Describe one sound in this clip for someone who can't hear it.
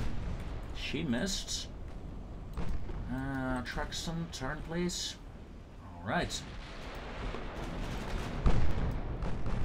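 Heavy guns boom across the sea.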